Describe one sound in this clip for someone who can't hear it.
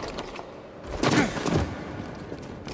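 Boots land heavily on stone with a thud.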